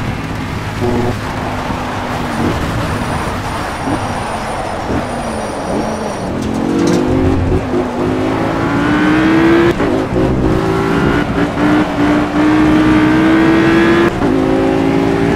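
Rain patters steadily on a car.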